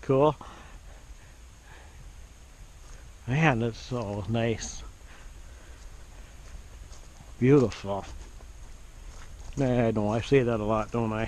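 Footsteps crunch on a dirt trail.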